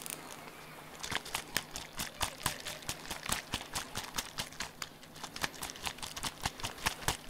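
A plastic bottle is shaken and tapped quickly in rapid, crisp clicks close by.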